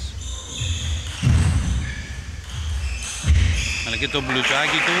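A ball clicks back and forth on a table tennis table.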